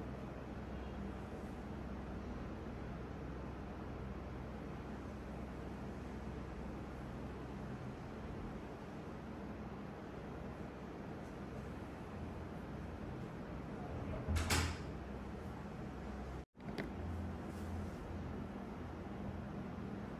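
Hands softly rub and pat skin during a face massage.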